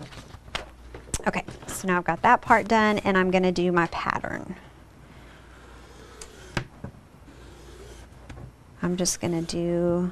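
A young woman speaks calmly into a close microphone.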